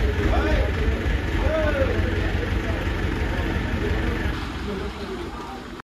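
A crane engine rumbles steadily.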